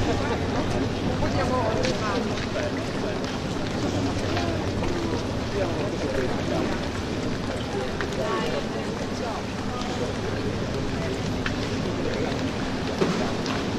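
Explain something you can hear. Water sloshes and laps in an echoing indoor pool.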